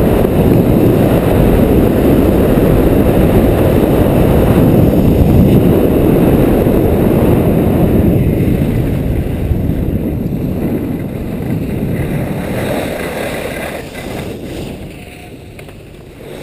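Skis carve and scrape over groomed snow downhill.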